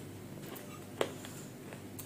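A spoon clinks against a metal bowl.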